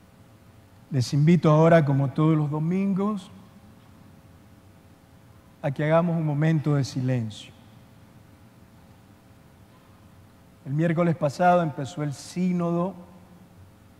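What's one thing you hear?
A man sings a slow chant through a loudspeaker in a large echoing hall.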